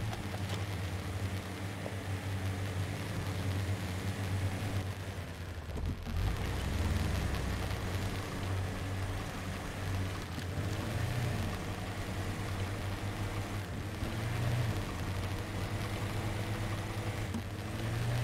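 Tyres crunch over rocks and gravel.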